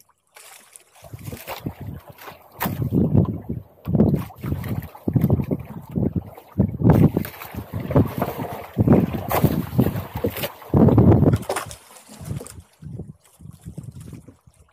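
A fishing reel whirs and clicks as it is wound in.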